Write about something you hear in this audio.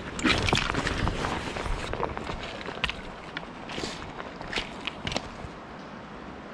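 Clothing rustles close by.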